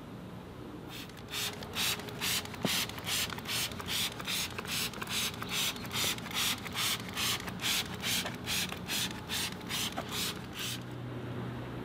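A trigger sprayer pumps in quick, regular bursts.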